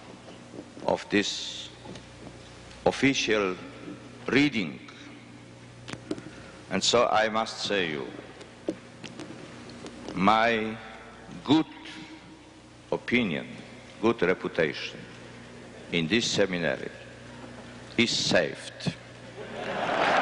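An elderly man speaks slowly into a microphone in a large echoing hall.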